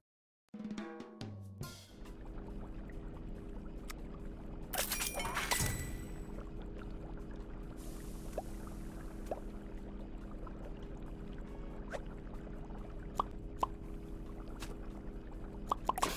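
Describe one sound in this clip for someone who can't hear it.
A cheerful game tune plays steadily.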